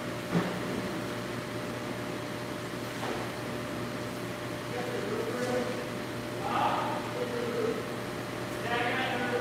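Water from a pressure washer hisses and splashes steadily in a large echoing hall.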